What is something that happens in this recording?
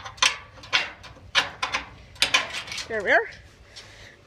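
A metal latch clanks and rattles.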